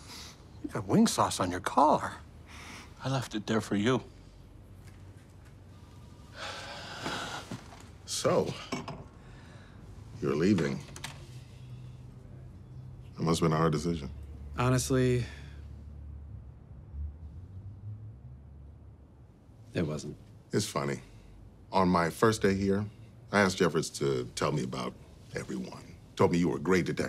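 A middle-aged man speaks calmly up close.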